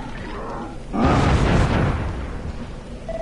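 A deep whooshing burst rumbles as a cloud of dust bursts up.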